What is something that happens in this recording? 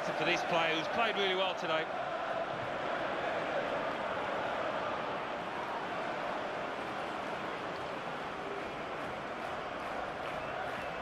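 A large crowd roars and cheers steadily in a stadium.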